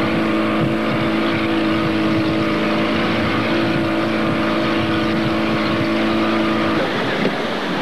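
A motorboat's engine drones under way.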